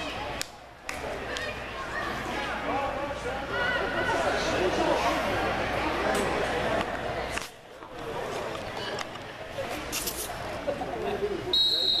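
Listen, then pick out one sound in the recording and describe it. A crowd of spectators and players shouts and cheers in a large echoing hall.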